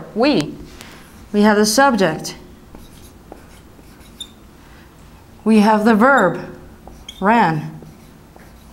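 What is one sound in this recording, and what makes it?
A young woman speaks calmly in short phrases, close to a microphone.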